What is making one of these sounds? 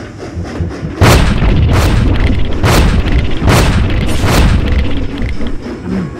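Explosions boom and roar one after another.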